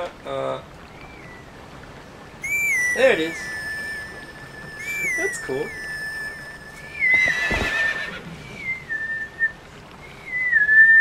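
A high reedy whistle plays a slow melody.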